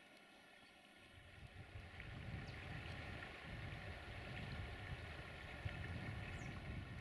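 A river rushes and gurgles steadily nearby.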